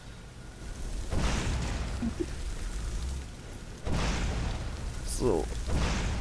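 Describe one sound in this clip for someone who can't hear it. Flames whoosh and roar in loud bursts.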